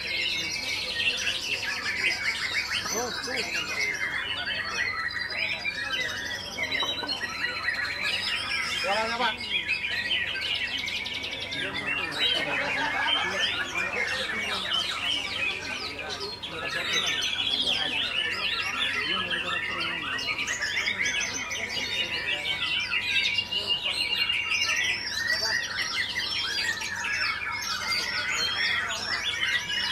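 Many other caged birds chirp and twitter close by.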